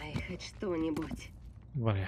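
A metal box rattles as it is opened.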